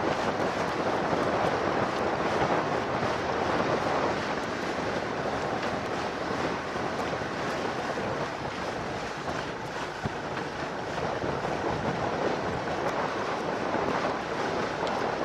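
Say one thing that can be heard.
Water laps against sailboat hulls.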